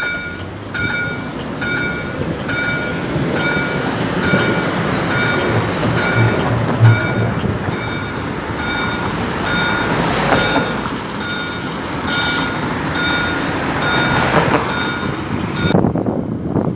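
A tram rumbles away along its rails.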